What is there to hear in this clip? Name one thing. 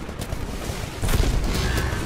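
Electricity crackles and zaps sharply.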